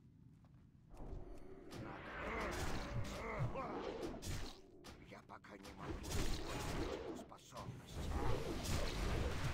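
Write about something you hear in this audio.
Weapons clash and spells crackle in a fight.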